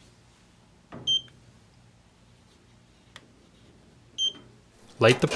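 A digital meter beeps briefly.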